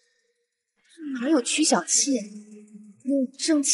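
A young man speaks in a low voice.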